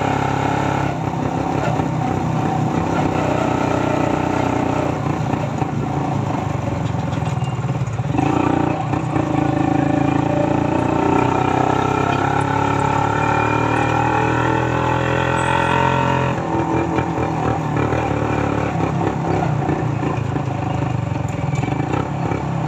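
Wind rushes past while riding along a road.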